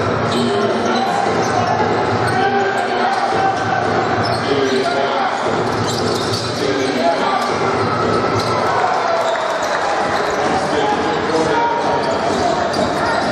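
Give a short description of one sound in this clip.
A large crowd murmurs and calls out in an echoing indoor hall.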